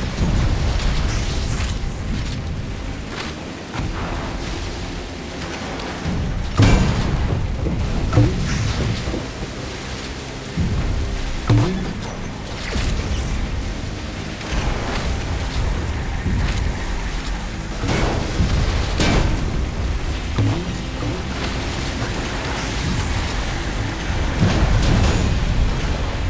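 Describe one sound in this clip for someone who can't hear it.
A jet ski engine hums steadily over water.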